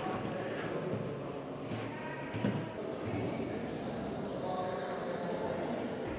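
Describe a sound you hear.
Footsteps shuffle across a stone floor in a large echoing hall.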